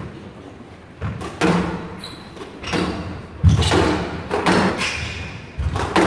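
A squash ball smacks hard against the walls in a fast rally, echoing in an enclosed court.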